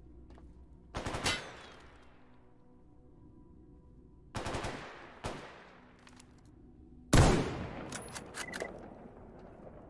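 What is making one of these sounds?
A rifle fires loud shots that echo away.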